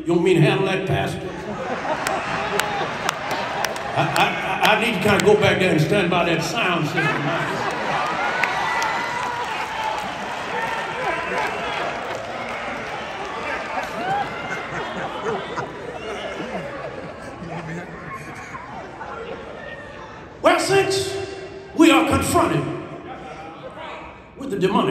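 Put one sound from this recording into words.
A man speaks forcefully into a microphone over loudspeakers in a large echoing hall.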